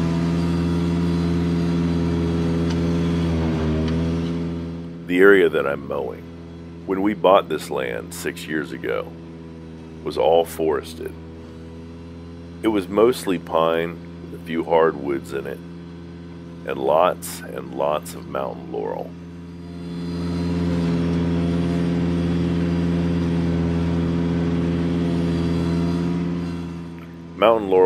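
A small mower engine drones steadily close by.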